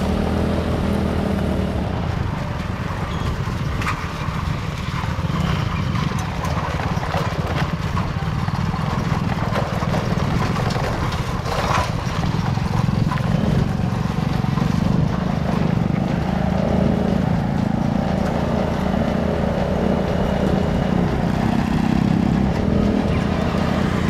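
A small engine drones steadily close by.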